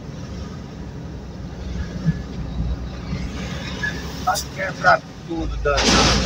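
A truck passes close by with a loud roar.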